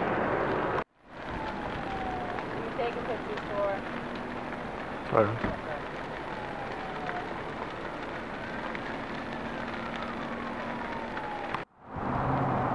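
Flames crackle through burning dry grass.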